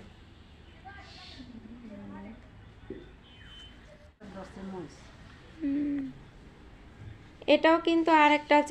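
A woman talks calmly close by.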